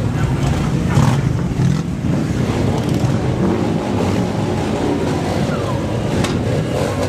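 Harley-Davidson V-twin motorcycles rumble past one after another.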